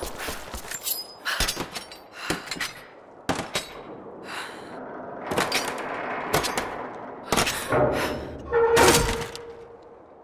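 A metal tool knocks and scrapes against metal in quick, sharp strikes.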